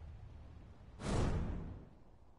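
A bright burst flares with a rising whoosh.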